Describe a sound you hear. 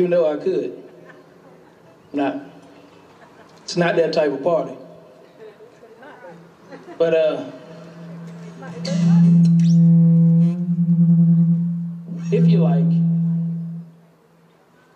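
A man sings into a microphone outdoors.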